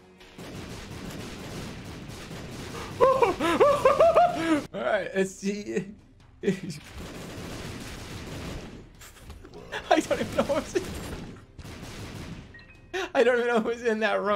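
Video game sound effects of splattering and blasting go on rapidly.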